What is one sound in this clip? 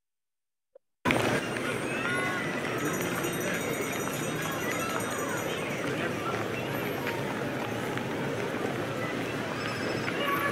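A busy crowd murmurs and bustles outdoors.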